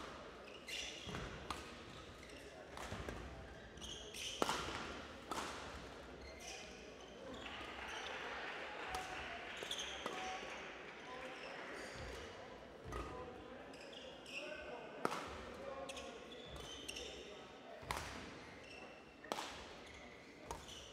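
A shuttlecock is struck sharply back and forth by rackets in a large echoing hall.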